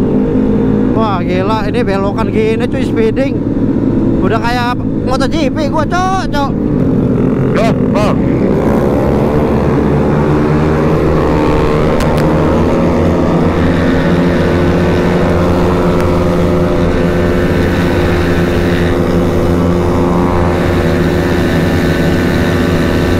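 A motorcycle engine roars steadily at speed.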